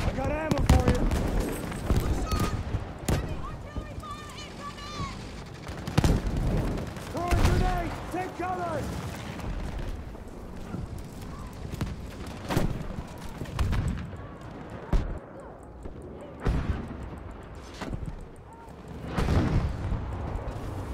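Guns fire in sharp bursts.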